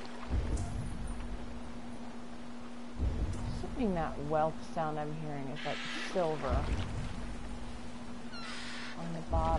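Waves splash and churn around a small wooden boat.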